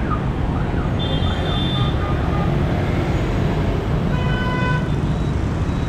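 Vehicle horns honk briefly.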